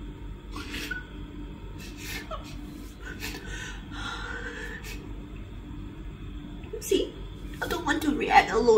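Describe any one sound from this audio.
A young woman sobs and sniffles close by.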